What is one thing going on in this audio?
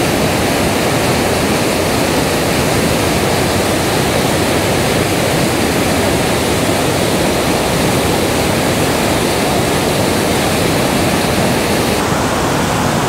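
A waterfall roars through a rocky gorge.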